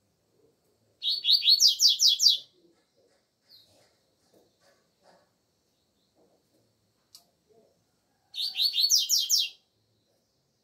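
A double-collared seedeater sings short, fast trilled phrases.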